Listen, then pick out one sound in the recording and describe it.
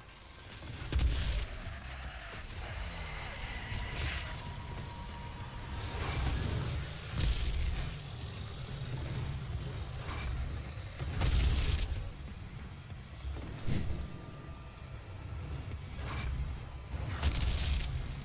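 Loud explosions boom.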